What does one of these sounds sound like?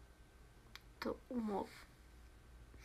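A young woman speaks briefly and softly, close to a phone microphone.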